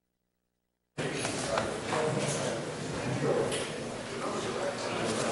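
A man speaks into a microphone in a large room.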